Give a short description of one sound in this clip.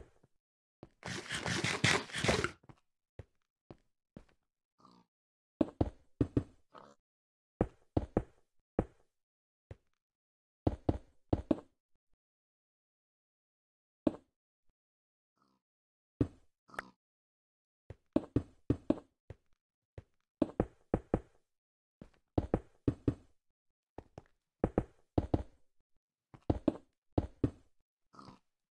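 Stone blocks thud and clack as they are placed, again and again in quick bursts.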